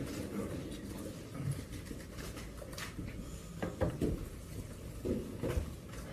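Chairs scrape and bump as men sit down.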